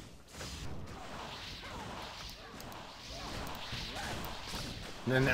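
Magic blasts crackle and burst in quick succession.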